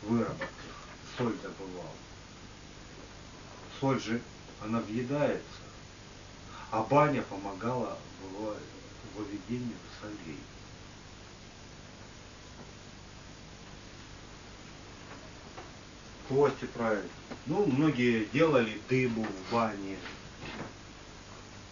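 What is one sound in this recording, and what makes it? A man speaks calmly in a quiet room, pausing often.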